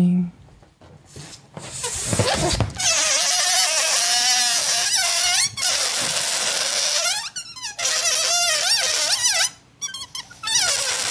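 A balloon squeaks and rubs loudly up close.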